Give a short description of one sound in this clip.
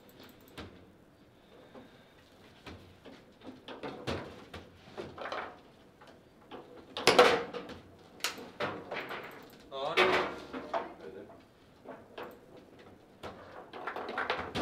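Table football rods spin and the ball clacks sharply against the players and walls.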